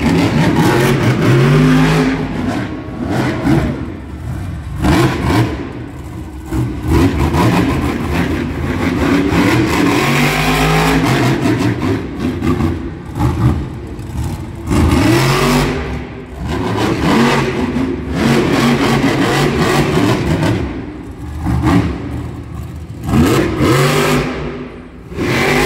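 A monster truck engine revs hard in a large echoing arena.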